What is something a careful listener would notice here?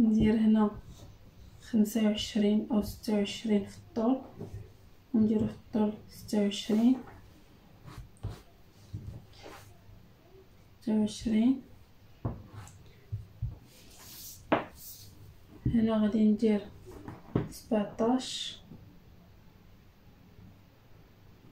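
Fabric rustles softly as hands smooth and fold it.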